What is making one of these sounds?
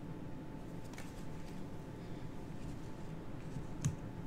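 Playing cards tap and slide on a mat.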